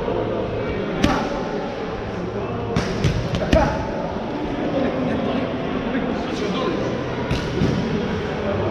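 Boxing gloves thud against punch mitts in a large echoing hall.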